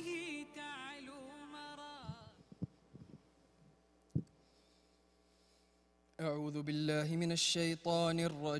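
An elderly man chants melodically into a microphone in a reverberant hall.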